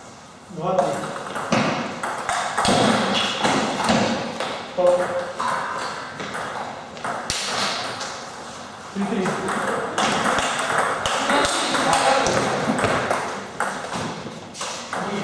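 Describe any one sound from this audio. A table tennis ball clicks on the table and off paddles in a rally.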